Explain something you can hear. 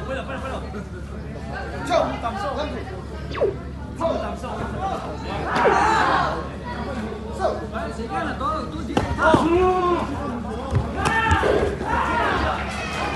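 A crowd of spectators cheers and shouts in a large echoing hall.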